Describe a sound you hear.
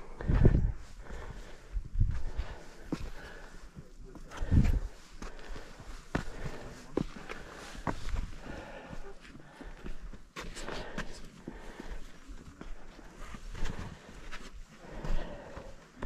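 Footsteps scuff and scrape on rough rock close by.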